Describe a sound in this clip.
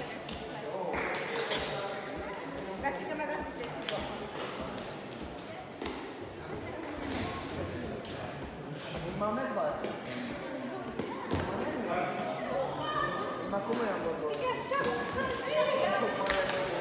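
Men talk and call out in a large echoing hall.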